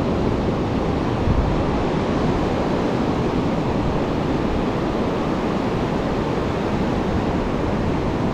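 Ocean waves break and wash onto the shore in the distance.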